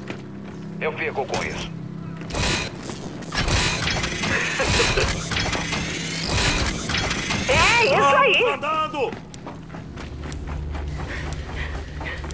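Heavy boots thud on the ground as a soldier walks.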